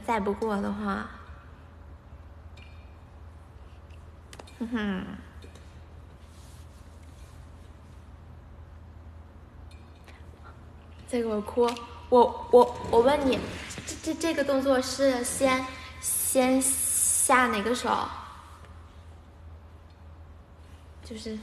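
A young woman talks animatedly and close up.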